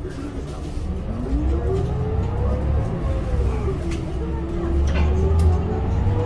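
A bus engine revs up, rising and falling in pitch.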